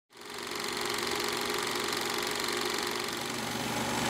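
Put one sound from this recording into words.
A film projector whirs and clatters steadily.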